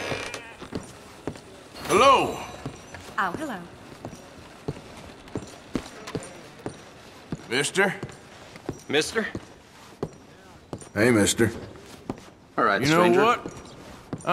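Footsteps thud on a wooden floor.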